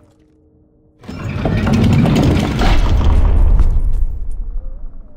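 A heavy wooden door rumbles open.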